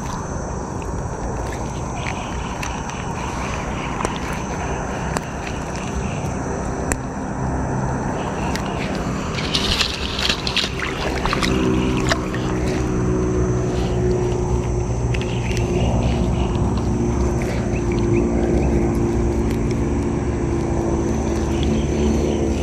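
A wet net rustles and scrapes as it is handled.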